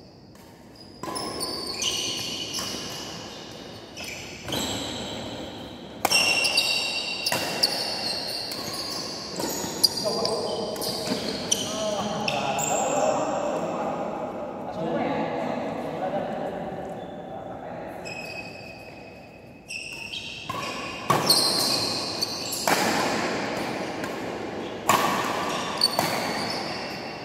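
Sneakers squeak sharply on a court floor.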